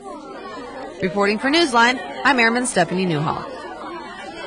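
A young girl speaks loudly with animation.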